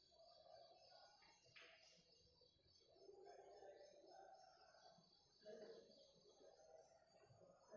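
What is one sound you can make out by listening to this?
Chalk scratches and taps on a chalkboard.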